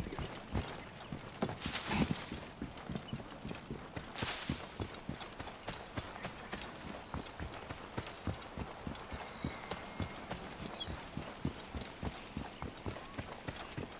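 Footsteps run quickly over dirt and gravel.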